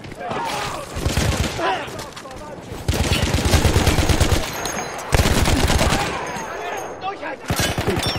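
A heavy machine gun fires rapid bursts close by.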